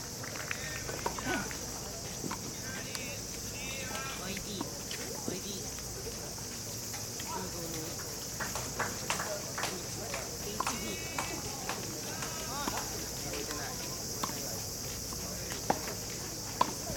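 Tennis balls are struck with rackets and bounce on a court outdoors.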